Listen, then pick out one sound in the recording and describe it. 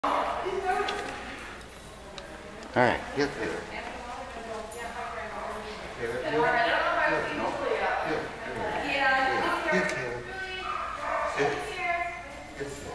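An older man talks to a dog in an encouraging voice.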